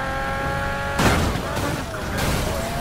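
A car scrapes along a metal barrier.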